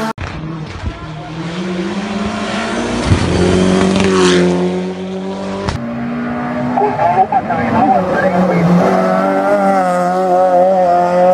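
A rally car engine roars and revs hard as the car speeds along a road.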